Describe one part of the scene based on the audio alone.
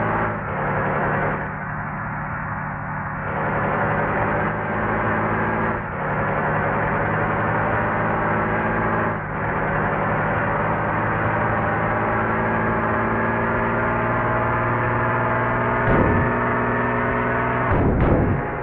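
A large bus engine drones steadily while driving.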